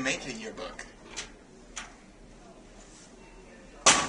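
A metal locker door clicks and rattles.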